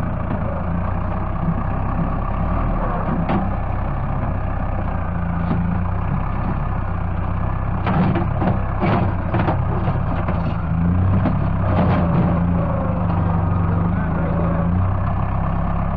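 A tractor bucket scrapes and digs into the soil.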